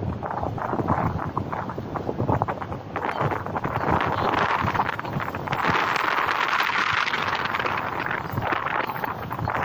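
Bushes rustle in the wind.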